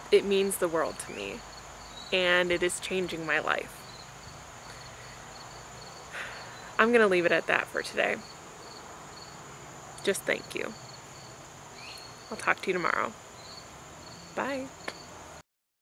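A young woman talks cheerfully and close by, outdoors.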